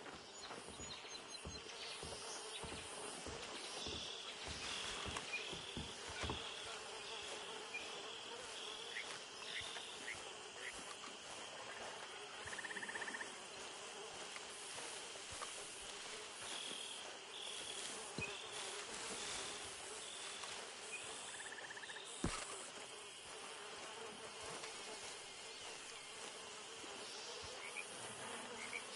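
Footsteps swish through tall grass and plants.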